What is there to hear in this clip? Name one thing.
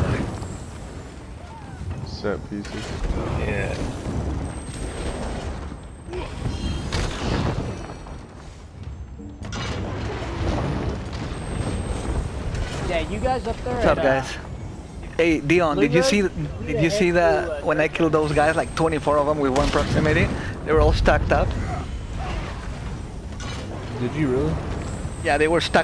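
Magic spells crackle and burst in quick bursts.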